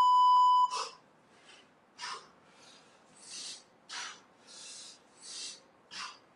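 A man breathes hard while doing pull-ups.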